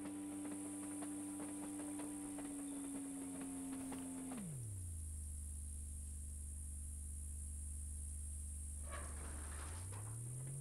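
A motor hums steadily, drops sharply in pitch, then rises again near the end.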